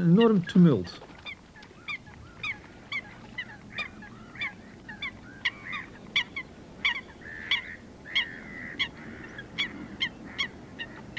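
Water birds give short, sharp calls again and again.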